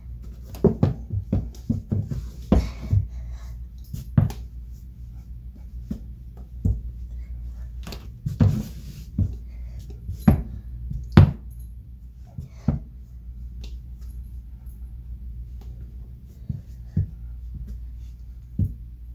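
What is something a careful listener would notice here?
Shoes tap and scuff against a wall at an uneven pace.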